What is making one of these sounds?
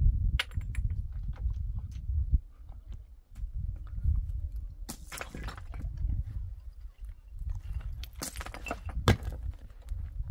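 Footsteps crunch and scrape on loose stones.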